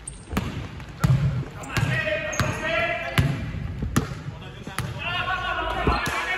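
A basketball is dribbled on a wooden court.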